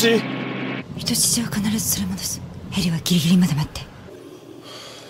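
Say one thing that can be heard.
A young woman speaks tensely into a phone.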